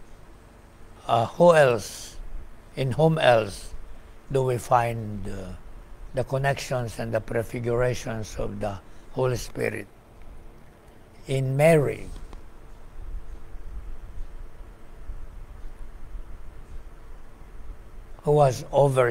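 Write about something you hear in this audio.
An elderly man speaks calmly and slowly into a microphone in a small echoing room.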